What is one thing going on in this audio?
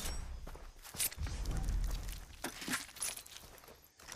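A knife slices wetly through flesh.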